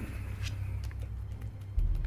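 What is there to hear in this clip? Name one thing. A card taps and scrapes on a hard surface.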